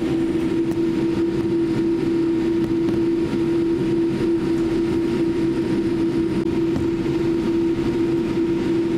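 Aircraft wheels rumble over the taxiway.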